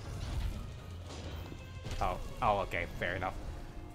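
Fiery blasts crackle and boom.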